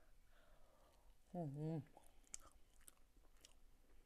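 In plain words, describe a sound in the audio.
A woman chews food with soft, wet smacking sounds.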